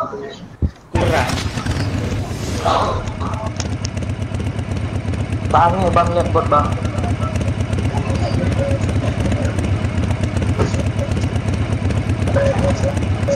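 A motorbike engine drones steadily.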